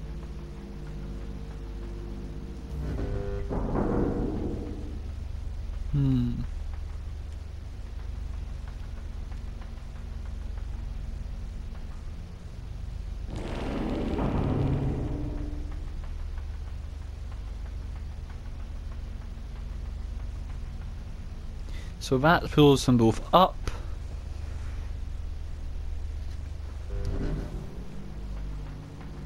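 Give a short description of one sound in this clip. Small footsteps patter softly on a hard floor.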